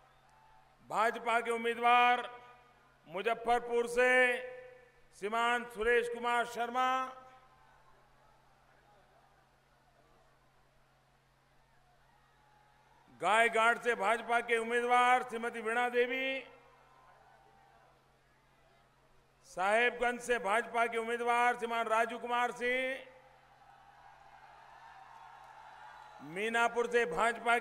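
A man shouts slogans in short bursts through a loudspeaker, echoing outdoors.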